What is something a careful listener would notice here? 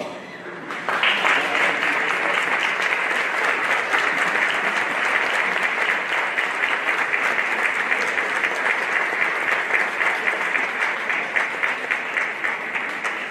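A crowd applauds loudly in a large echoing hall.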